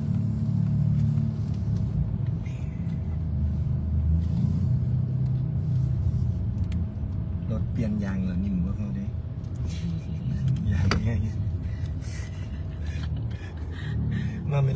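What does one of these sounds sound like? A car engine hums and road noise rumbles steadily.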